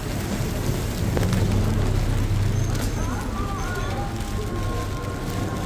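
Car tyres hiss on a wet road as a car passes slowly.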